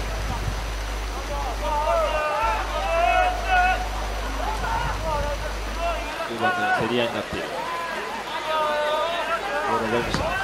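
A football is kicked on a grass pitch.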